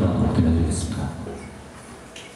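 A bass guitar plays low notes through an amplifier.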